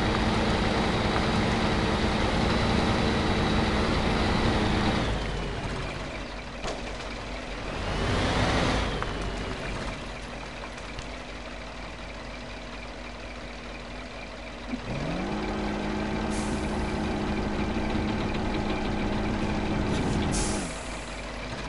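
A heavy truck engine rumbles and revs.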